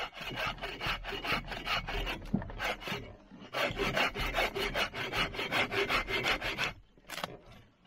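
A hand saw cuts through wood in quick, rhythmic strokes.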